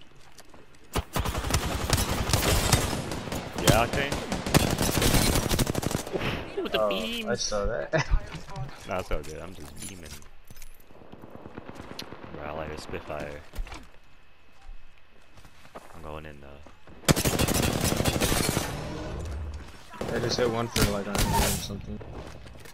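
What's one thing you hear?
Rapid gunfire crackles in loud bursts.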